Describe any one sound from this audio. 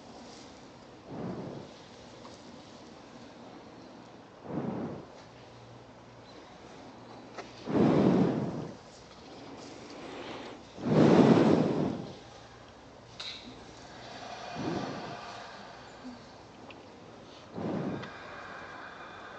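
Wind gusts through the trees.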